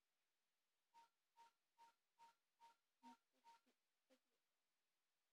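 Short electronic beeps sound from a video game on a television speaker, quietly.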